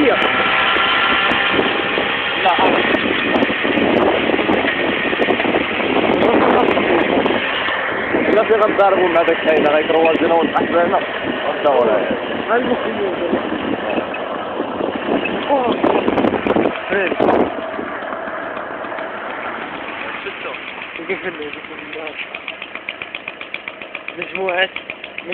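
A small motorbike engine hums steadily as it rides along.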